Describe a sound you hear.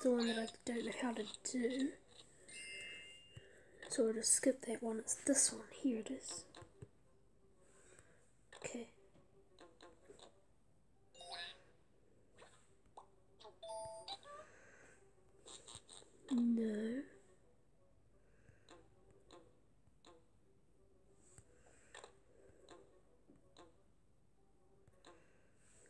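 Short cartoon game sound effects chime, pop and squeak.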